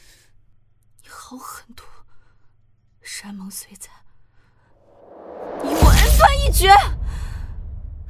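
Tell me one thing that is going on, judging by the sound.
A young woman speaks in an upset, pleading voice, close by.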